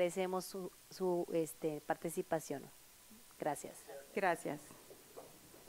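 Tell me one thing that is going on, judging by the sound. A woman speaks brightly into a microphone, close and clear.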